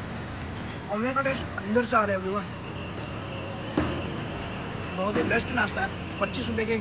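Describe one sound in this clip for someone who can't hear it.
A young man talks close by, with animation.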